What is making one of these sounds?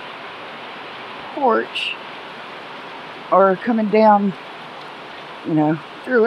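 Hail patters steadily on the ground outdoors.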